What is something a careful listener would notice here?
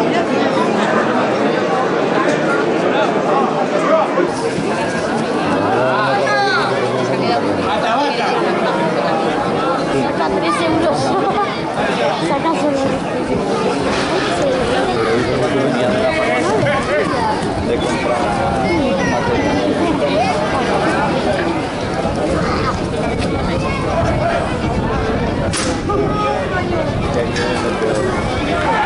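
A crowd of spectators chatters and shouts.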